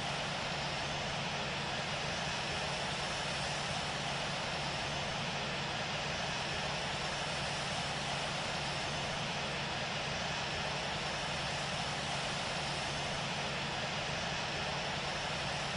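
A jet airliner's engines roar steadily in flight.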